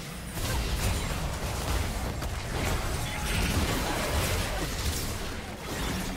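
Magic spells burst and crackle in a video game battle.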